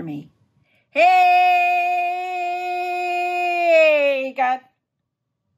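A middle-aged woman sings a long, sustained note close to a microphone, her voice slowly falling.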